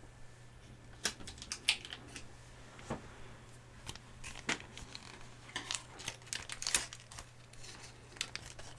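Small plastic sauce packets rustle and tear open.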